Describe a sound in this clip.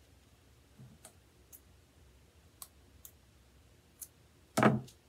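Scissors snip through yarn with short clicks.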